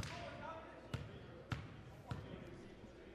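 A basketball bounces on a hard court floor.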